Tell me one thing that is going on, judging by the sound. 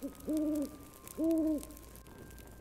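An owl hoots twice.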